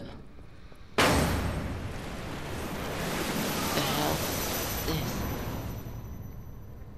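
A loud fiery blast roars and slowly dies away.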